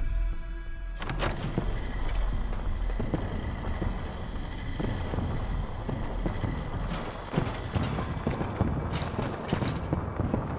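Heavy footsteps thud steadily on hard ground.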